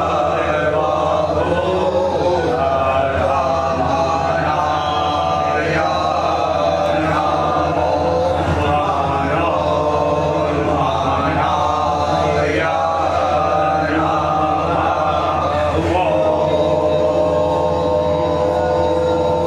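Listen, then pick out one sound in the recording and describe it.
A group of men chant together in a steady rhythm, echoing in a hard-walled room.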